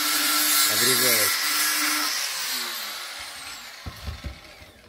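An angle grinder whines loudly and winds down.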